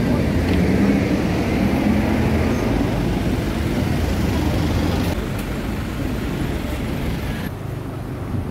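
City traffic hums steadily nearby outdoors.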